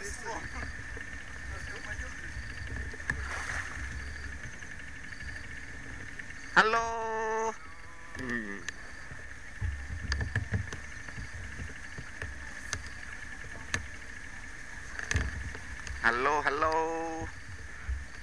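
Elephants wade through shallow river water.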